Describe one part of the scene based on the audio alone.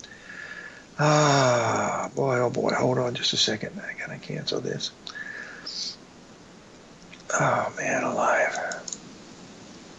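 An elderly man speaks calmly into a headset microphone, heard as over an online call.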